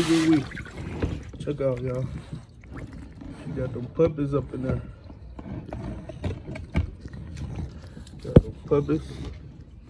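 A dog's paws splash in shallow water.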